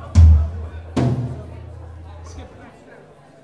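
A bass guitar rings out low, loud notes through an amplifier.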